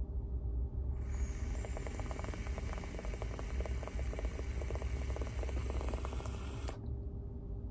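A vaporizer sizzles and crackles as a man draws on it.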